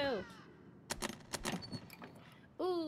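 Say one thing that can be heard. A metal case clicks open.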